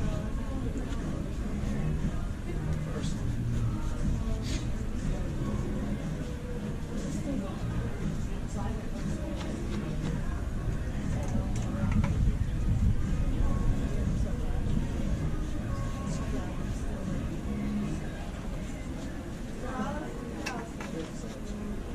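A cloth rubs and squeaks against a sneaker.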